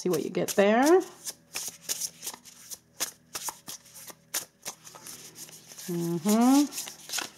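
Playing cards flick and patter as a deck is shuffled by hand.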